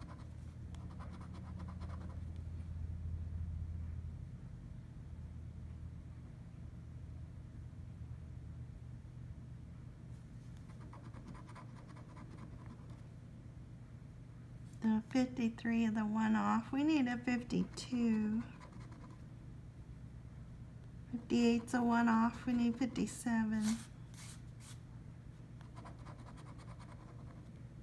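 A coin scratches across a scratch card.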